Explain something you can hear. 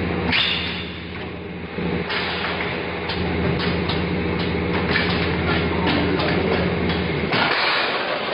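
A packaging machine hums steadily.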